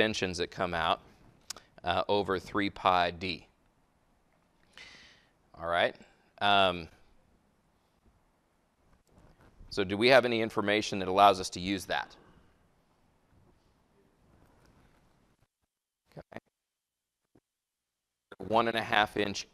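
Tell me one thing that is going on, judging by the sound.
A man lectures calmly into a microphone, with pauses.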